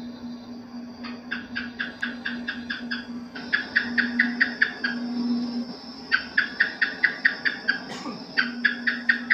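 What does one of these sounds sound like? A gecko chirps in quick series of sharp clicks.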